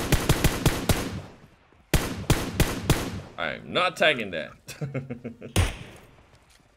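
Rapid rifle shots fire in quick bursts.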